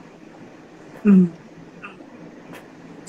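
A young man laughs briefly over an online call.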